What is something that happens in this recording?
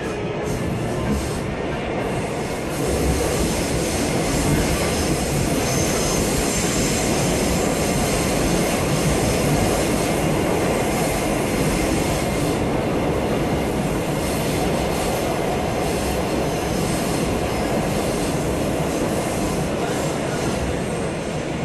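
A subway train rumbles and roars through a tunnel at speed, heard from inside the car.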